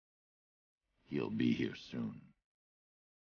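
A man speaks in a low, gravelly voice.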